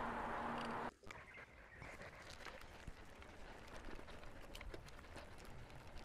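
Bicycle tyres rattle and crunch over a rough, broken road.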